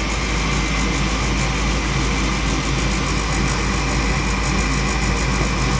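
A furnace fan whirs and hums steadily close by.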